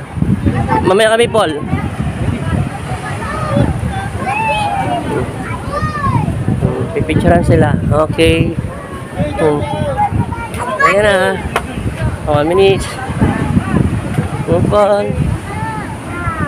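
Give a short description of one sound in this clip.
Several people chatter and call out nearby, outdoors in wind.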